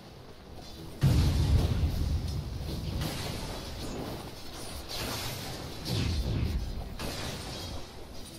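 Game spell effects and weapon clashes crackle and boom in a fierce battle.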